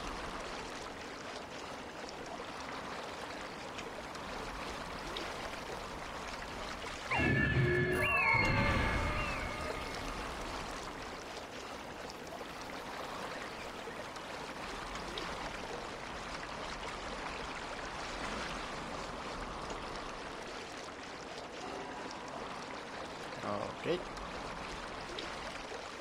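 Water splashes softly around a rowing boat.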